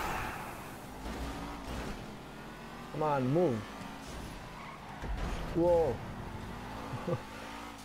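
Race car engines roar as the cars speed away.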